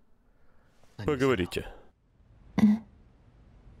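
A young man speaks softly nearby.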